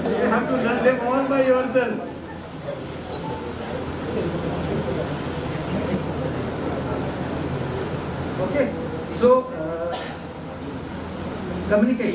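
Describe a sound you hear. A man speaks calmly through a microphone and loudspeakers in an echoing hall.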